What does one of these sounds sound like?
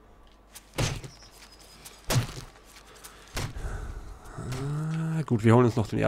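A knife hacks into an animal carcass with wet thuds.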